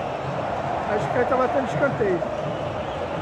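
Nearby fans shout and whistle loudly.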